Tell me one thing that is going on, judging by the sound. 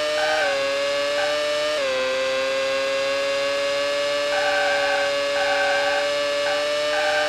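A racing car engine whines at high pitch, dropping briefly as it shifts gears.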